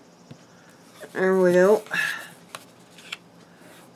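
Paper crinkles and rustles as it is folded by hand.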